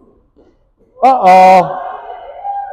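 A woman shouts loudly with excitement.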